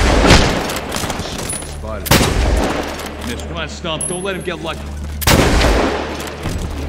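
Loud rifle shots crack, each followed by a rolling echo.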